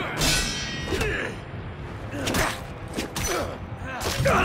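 Swords clash with sharp ringing metal strikes.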